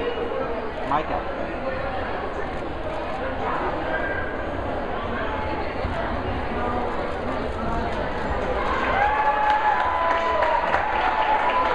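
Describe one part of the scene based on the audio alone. A crowd of people chatters in a large echoing hall.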